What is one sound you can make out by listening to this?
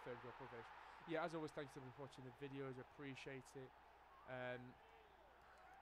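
A crowd cheers loudly after a goal.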